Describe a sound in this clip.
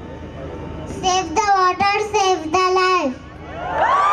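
A young girl speaks in a high, sing-song voice into a microphone over loudspeakers.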